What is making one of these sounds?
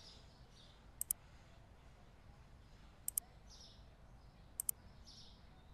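Short double clicks sound a few times as menu buttons are pressed.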